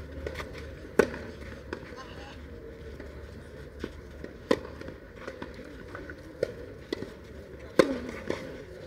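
Tennis rackets strike a ball with sharp pops, back and forth across a court.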